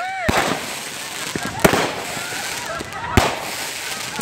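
Firecrackers bang sharply outdoors.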